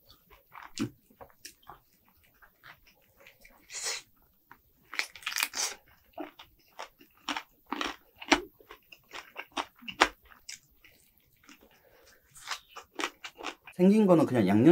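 A man chews and bites crunchy fried food close to a microphone.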